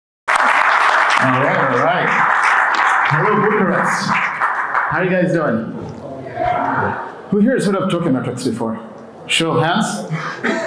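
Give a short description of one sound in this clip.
A man speaks with animation into a microphone over loudspeakers in a large echoing hall.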